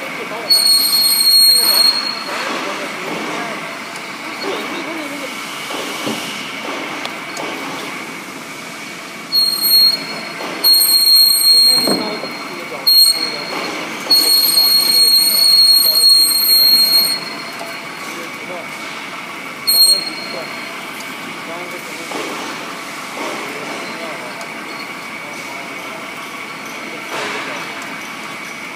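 A pipe cutting machine hums and grinds steadily as it turns around a steel pipe.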